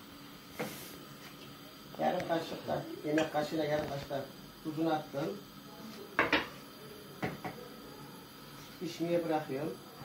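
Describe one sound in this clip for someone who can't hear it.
A metal spoon scrapes and clinks inside a pot.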